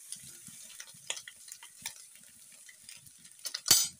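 Salt patters onto vegetables in a pan.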